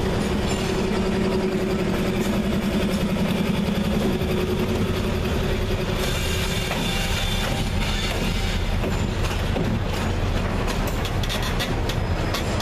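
Train wheels clatter rhythmically over the rail joints.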